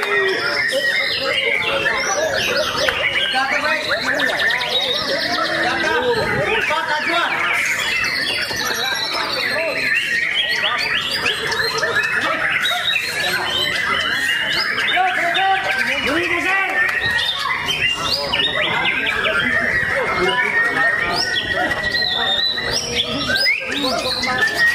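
A songbird sings a fast, varied, warbling song close by.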